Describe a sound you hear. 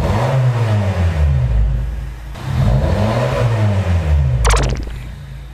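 A car engine revs up and down with a deep exhaust rumble.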